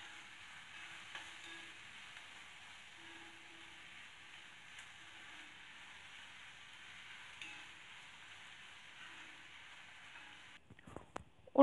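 Chopped onions sizzle in a hot pan.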